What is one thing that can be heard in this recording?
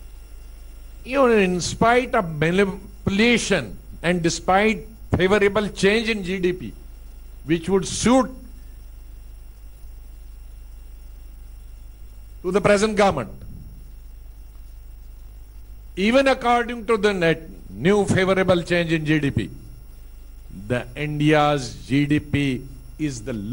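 A man speaks calmly into a microphone, in bursts with pauses.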